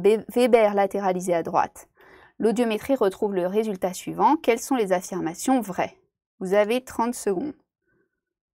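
A young woman speaks calmly and clearly into a microphone, close by.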